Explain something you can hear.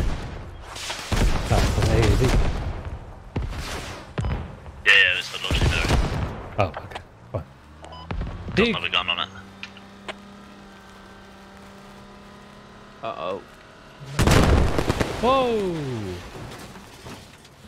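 Explosions boom nearby, rumbling deeply.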